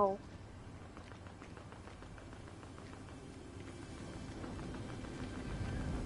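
Footsteps tap on stone as a character walks.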